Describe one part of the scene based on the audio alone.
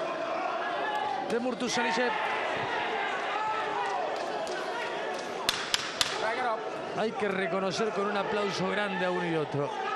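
Boxing gloves thud against bodies in quick punches.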